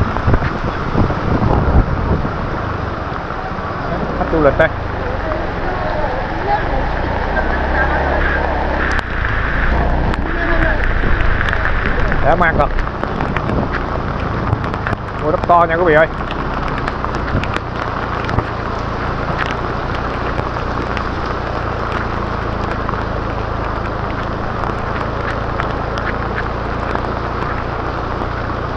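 A motorbike engine hums at low speed.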